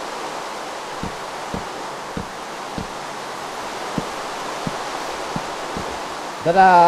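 Soft footsteps thud at an even pace.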